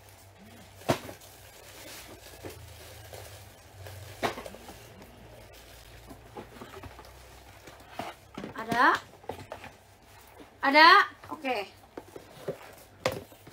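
A handbag's clasp clicks and taps as it is handled.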